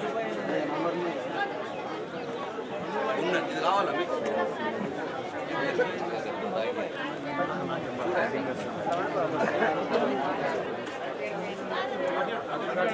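A crowd of men and women chatter close by.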